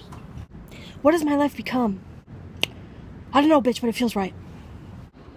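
A young woman speaks close up in a high, sing-song voice.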